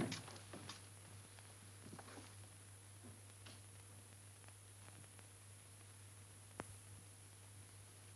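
A broom sweeps across a wooden floor.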